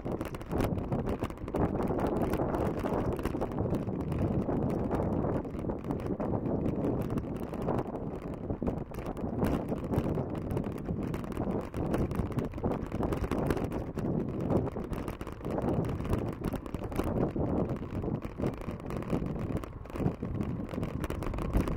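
Bicycle tyres roll on a paved path.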